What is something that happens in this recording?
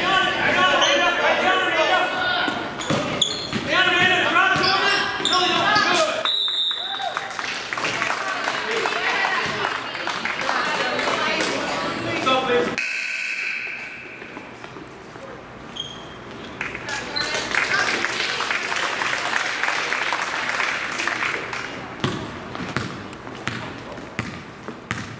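A crowd in a large echoing gym cheers and shouts.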